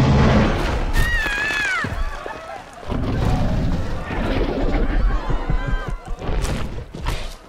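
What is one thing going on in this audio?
People scream as they run.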